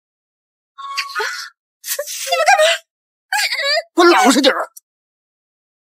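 A young woman shouts with agitation close by.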